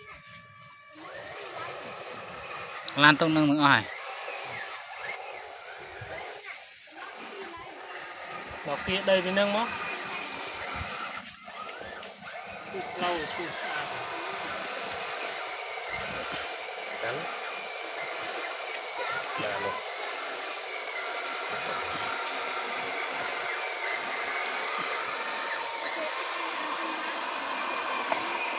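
A toy bulldozer's small electric motor whines steadily.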